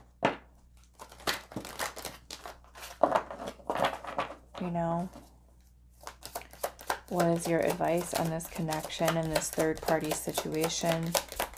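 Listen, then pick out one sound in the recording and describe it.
Playing cards shuffle and riffle with quick soft taps.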